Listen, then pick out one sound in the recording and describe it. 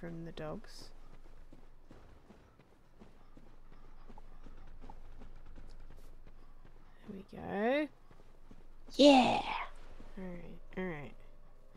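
A young woman exclaims with animation, close to a microphone.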